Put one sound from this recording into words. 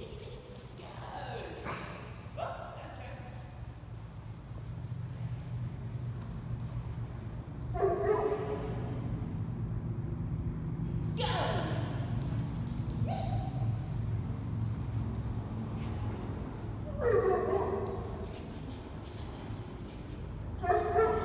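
A woman calls out commands in short bursts in a large echoing hall.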